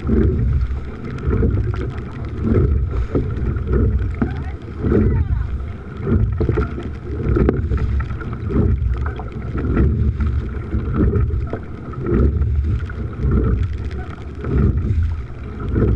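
Oars splash and pull through choppy water in a steady rhythm.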